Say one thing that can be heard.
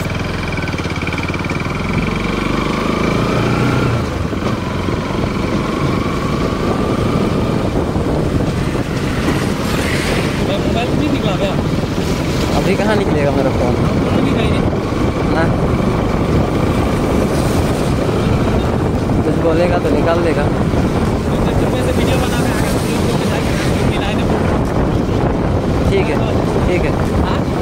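Wind rushes past loudly.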